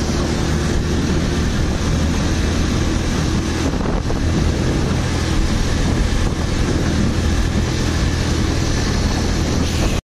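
A small engine drones and rattles loudly up close.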